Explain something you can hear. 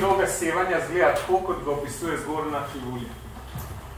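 A young man speaks calmly, lecturing in a room with a slight echo.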